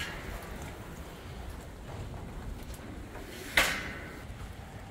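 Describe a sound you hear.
Water splashes as a tiger paws at it in a tub.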